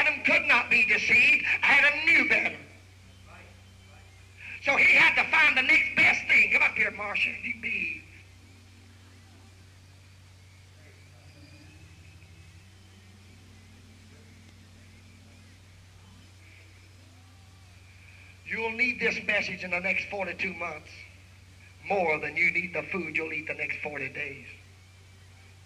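A man speaks calmly and clearly, in short bursts with pauses.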